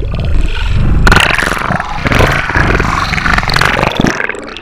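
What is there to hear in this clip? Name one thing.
Water splashes loudly as the surface is broken.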